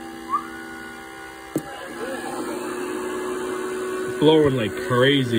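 An electrical device hums steadily.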